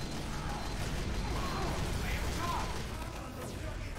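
A flamethrower roars in bursts.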